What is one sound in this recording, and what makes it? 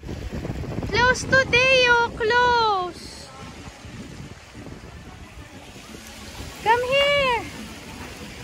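A young child calls out loudly in a high voice.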